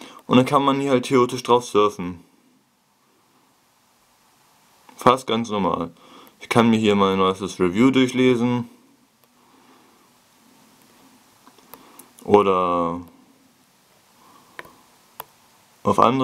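A stylus taps lightly on a touchscreen.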